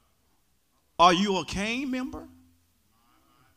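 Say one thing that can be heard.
A man preaches loudly and with passion into a microphone.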